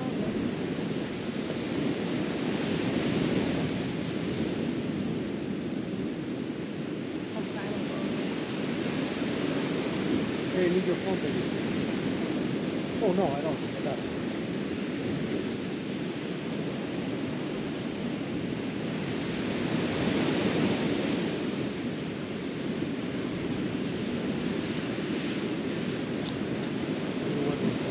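Waves wash onto a sandy beach, swelling and falling back.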